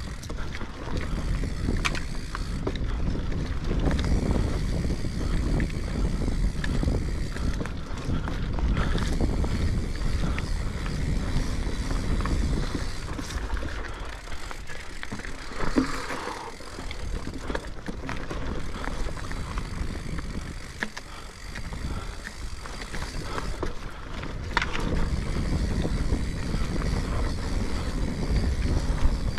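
A bicycle's frame and chain rattle and clatter over bumps.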